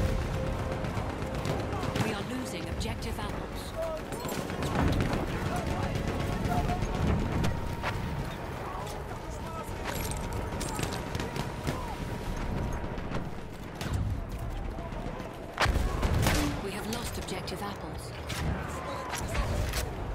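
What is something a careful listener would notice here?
Explosions boom in the distance.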